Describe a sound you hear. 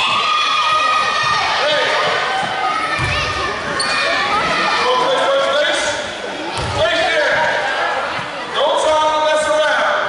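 A large crowd cheers and shouts loudly in an echoing gym.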